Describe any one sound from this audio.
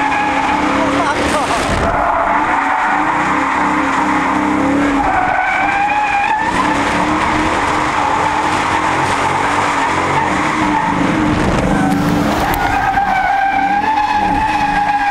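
A car engine roars loudly close by, revving up and down.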